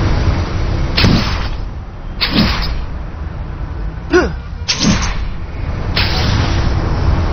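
A web line shoots out with a sharp whoosh.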